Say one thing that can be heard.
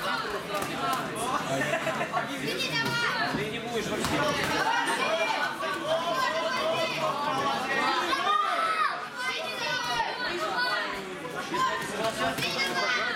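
Boxing gloves thud against a boxer's body.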